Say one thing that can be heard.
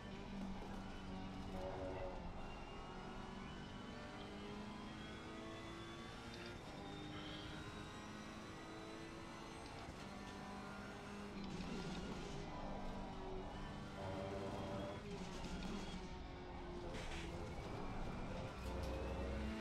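A racing car engine roars and revs up and down as gears shift.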